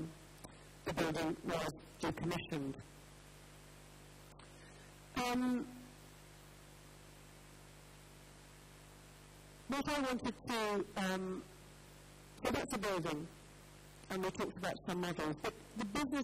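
A man speaks calmly through a microphone with pauses, in a large echoing hall.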